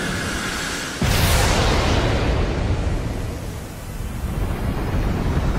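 A deep roaring blast booms out.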